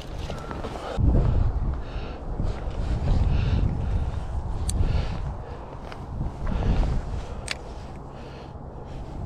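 Wind buffets against the microphone outdoors.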